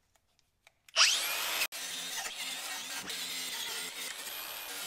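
An electric angle grinder whirs at high speed against metal.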